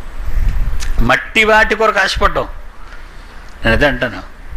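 An elderly man speaks calmly through a clip-on microphone, close by.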